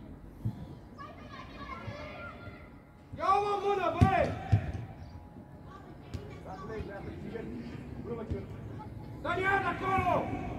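Young boys shout loudly across an open outdoor pitch.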